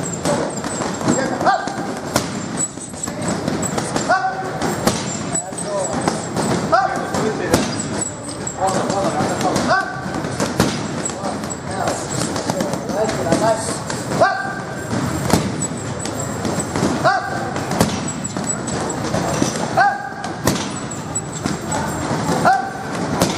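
A stick strikes a heavy punching bag with sharp thwacks.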